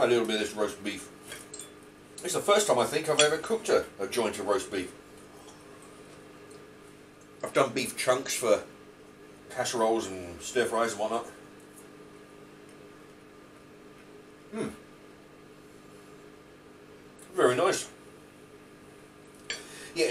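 A knife and fork scrape on a ceramic bowl.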